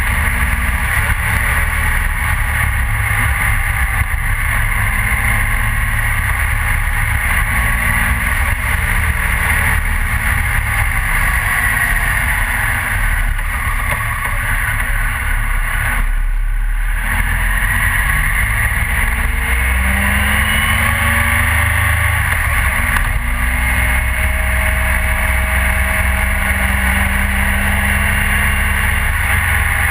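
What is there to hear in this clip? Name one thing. A motorcycle engine hums steadily, rising and falling in pitch.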